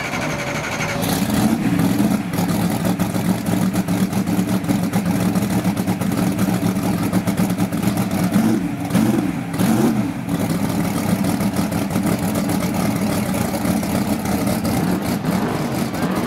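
A race car engine idles loudly with a deep, lumpy rumble.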